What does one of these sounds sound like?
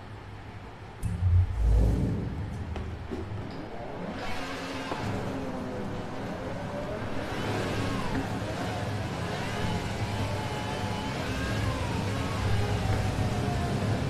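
A sports car engine starts with a roar and revs higher as the car speeds up.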